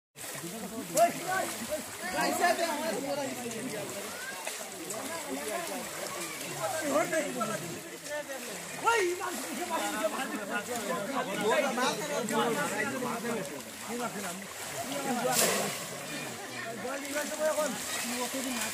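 Water splashes as people wade through a shallow stream.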